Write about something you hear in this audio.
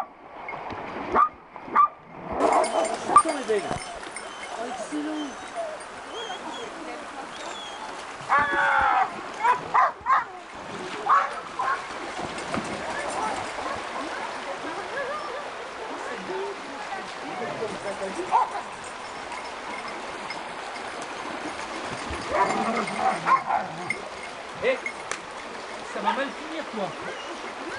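Water splashes as dogs wade.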